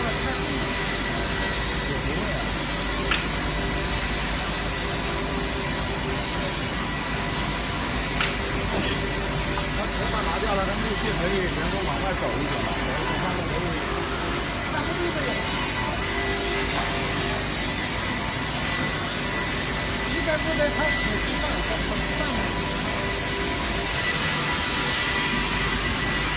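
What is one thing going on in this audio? A saw blade cuts through a log.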